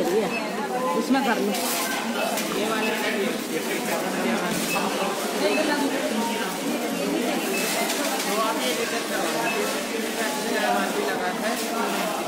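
Metal shopping carts rattle as they are pushed.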